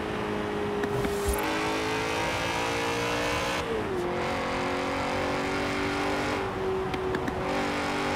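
A car engine pops and crackles as the driver lifts off.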